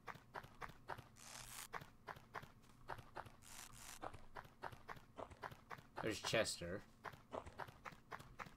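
Quick footsteps tap in an even rhythm.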